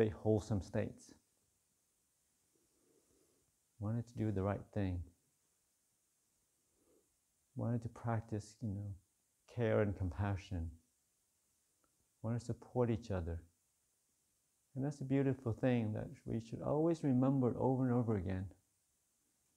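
A man speaks calmly and slowly into a microphone, with pauses between phrases.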